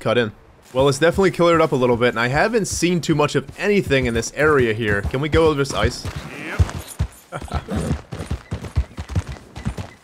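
Horse hooves crunch through snow.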